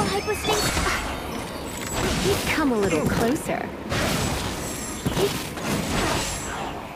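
Game sound effects of magic attacks whoosh and crackle.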